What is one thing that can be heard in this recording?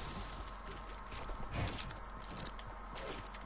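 Building pieces snap into place with quick clicks.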